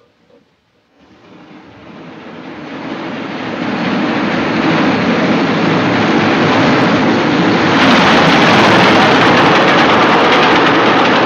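A steam locomotive hisses and chuffs as it pulls into a station.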